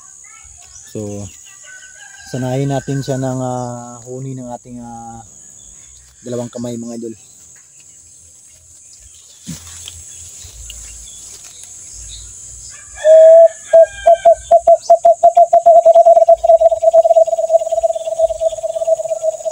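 A bird calls with loud, rapidly repeated whistling notes close by.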